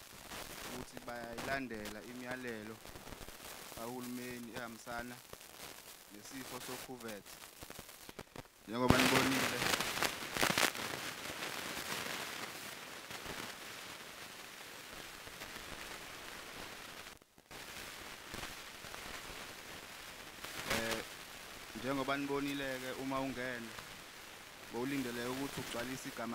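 A man speaks into a microphone in short phrases with pauses, heard through a loudspeaker.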